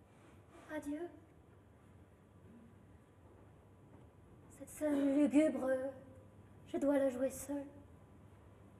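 A young woman speaks in a tearful, trembling voice.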